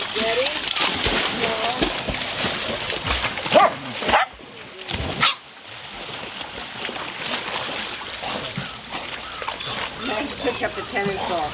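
Dogs splash into water and paddle.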